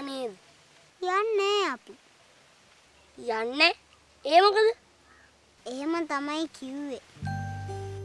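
Another young boy answers calmly, close by.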